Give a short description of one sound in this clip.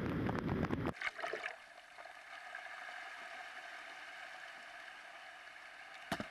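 Churning water rushes in the wind.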